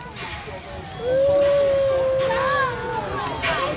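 A steam whistle blows a long steady note.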